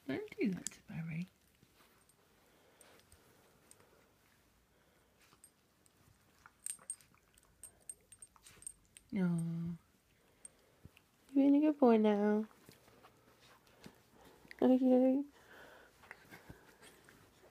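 Dogs' paws and bodies rustle on bedding.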